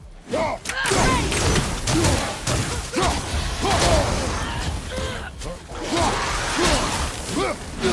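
Fire bursts with a roaring whoosh.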